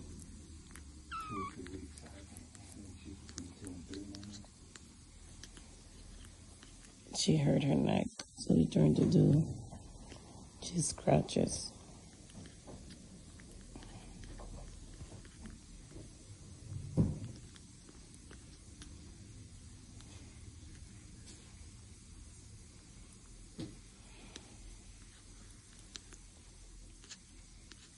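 A kitten suckles noisily at a bottle.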